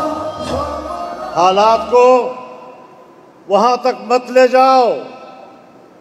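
An elderly man speaks forcefully into a microphone over loudspeakers, his voice echoing outdoors.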